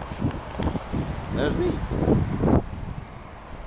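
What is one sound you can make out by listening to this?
A young man speaks briefly, close to the microphone.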